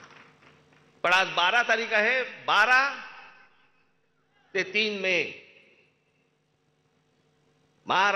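A man speaks forcefully into a microphone, his voice echoing through loudspeakers outdoors.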